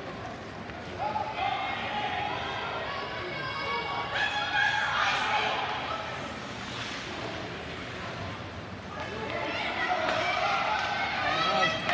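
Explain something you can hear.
Young players shout and call out loudly nearby.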